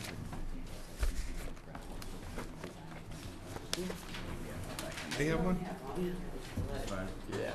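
A man speaks calmly through a microphone in a room.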